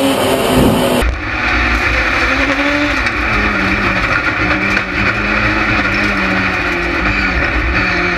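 A turbocharged rallycross car engine roars under load at racing speed, heard from inside the cockpit.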